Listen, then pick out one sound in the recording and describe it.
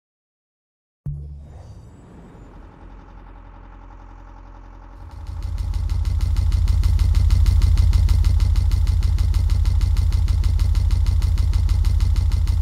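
Kart engines hum and rumble steadily.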